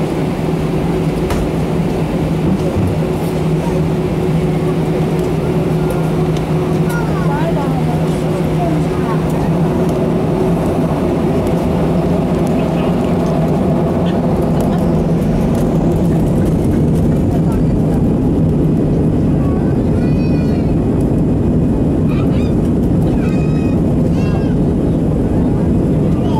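The jet engines of an Airbus A319 roar, heard from inside the cabin, as the airliner accelerates for takeoff.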